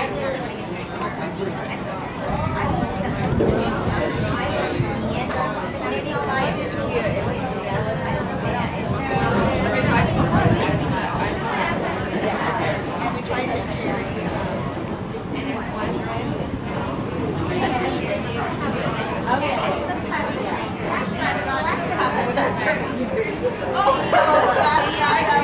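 A crowd of young people chatters and calls out outdoors.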